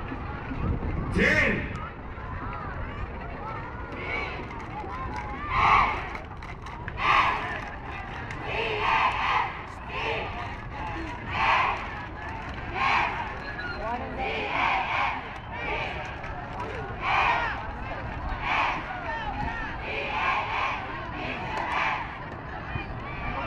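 A large crowd chants loudly in rhythmic bursts outdoors.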